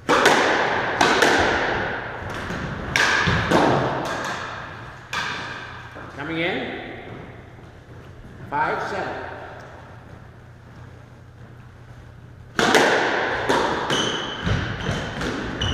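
Squash shoes squeak on a wooden floor.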